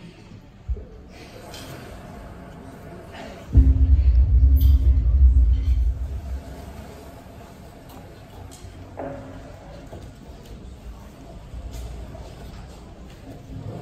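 Cymbals crash and shimmer.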